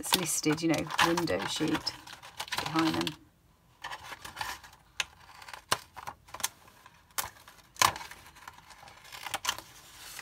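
Scissors snip through a thin plastic sheet.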